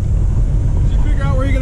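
An older man speaks close by.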